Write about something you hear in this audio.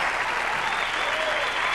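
A band plays music on a stage.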